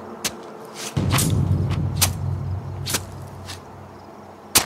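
Footsteps scrape on pavement.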